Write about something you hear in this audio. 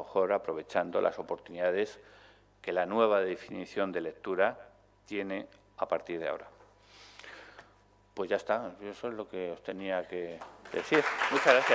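A middle-aged man speaks with animation into a microphone in a large room.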